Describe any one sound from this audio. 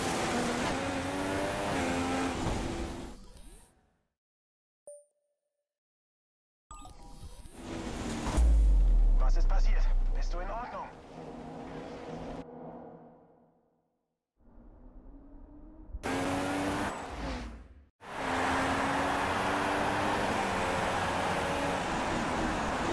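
A racing car engine roars at high revs, rising and falling in pitch.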